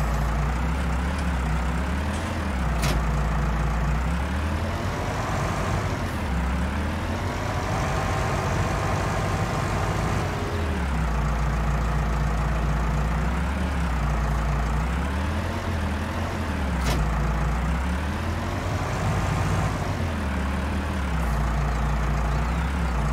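A tractor engine rumbles steadily and revs up and down.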